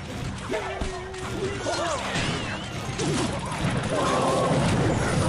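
Video game battle sounds clash and chime with bursts of effects.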